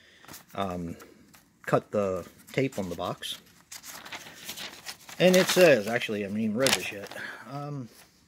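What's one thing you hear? A sheet of paper rustles as a hand handles it.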